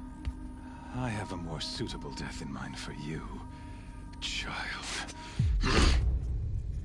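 A man speaks menacingly, close by.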